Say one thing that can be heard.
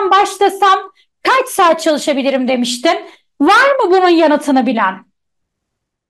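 A young woman speaks with animation through a microphone in an online call.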